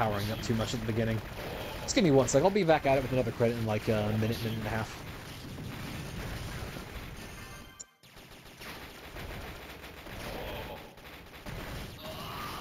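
Rapid electronic gunfire rattles without pause.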